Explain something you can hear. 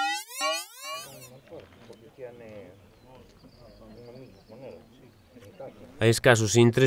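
A man talks calmly at a distance outdoors.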